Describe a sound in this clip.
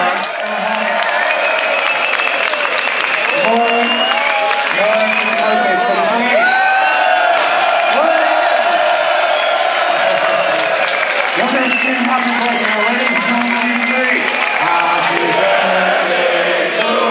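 A crowd sings along loudly in a large echoing hall.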